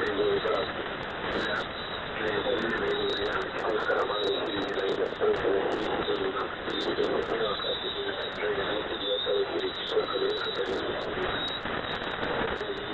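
Radio static hisses and crackles steadily.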